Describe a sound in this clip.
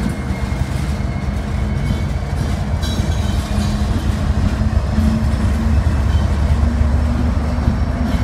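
Diesel locomotive engines rumble and drone loudly as a freight train passes close by.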